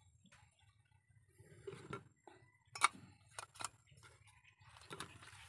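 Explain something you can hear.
Metal parts of a small camping stove clink and scrape together.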